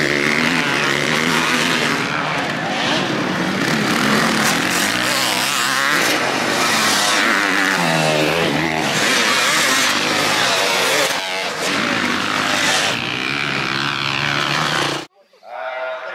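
Motorcycle engines roar and rev loudly.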